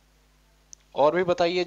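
A man speaks calmly and clearly into a clip-on microphone.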